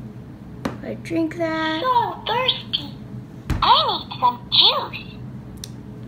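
A young girl speaks close by in a high, lively voice.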